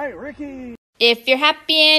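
A small dog barks.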